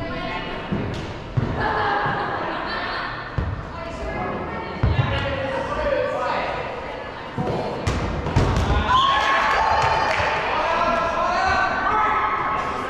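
Several young women call out and shout to each other in a large echoing indoor hall.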